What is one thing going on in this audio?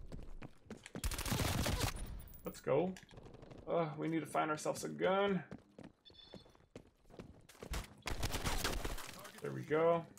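Gunfire bursts out in quick volleys.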